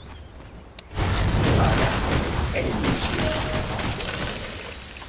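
Magic spells crackle and whoosh as game figures fight.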